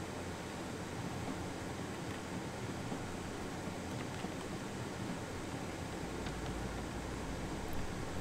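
A wooden cart rumbles as it is pushed along.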